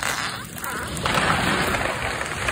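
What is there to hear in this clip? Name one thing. A large tree crashes through branches as it falls.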